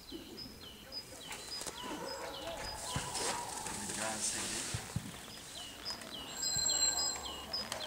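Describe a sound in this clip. A dog's paws patter quickly across dirt ground.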